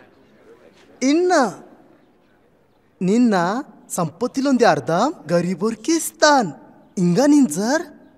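A middle-aged man speaks close by with animation.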